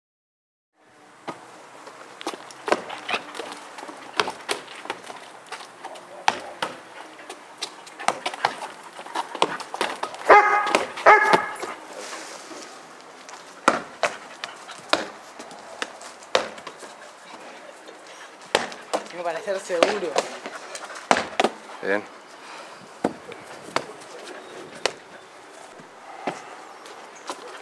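A ball slaps into hands again and again.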